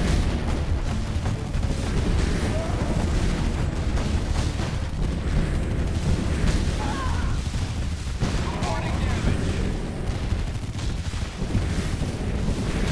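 Explosions rumble with deep booms.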